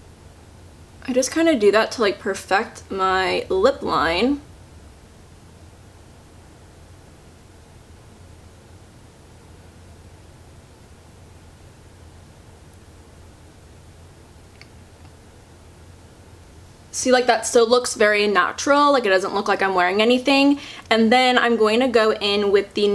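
A young woman talks calmly, close to the microphone.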